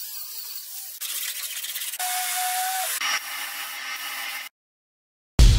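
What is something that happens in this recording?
An orbital sander whirs against metal.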